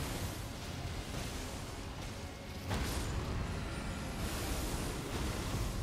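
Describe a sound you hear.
Magic spells whoosh and crackle.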